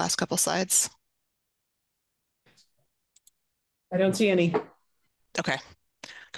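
A woman speaks calmly over an online call, with pauses.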